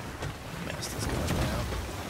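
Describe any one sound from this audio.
Water splashes up as a cannonball hits the sea.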